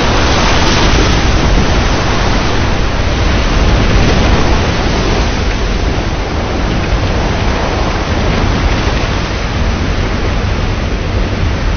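A waterfall roars and crashes down rocks.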